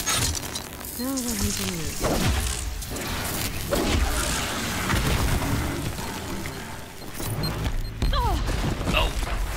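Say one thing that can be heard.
A machine creature groans and screeches.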